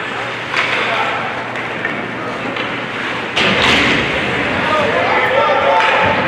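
Ice skates scrape across an ice rink in a large echoing arena.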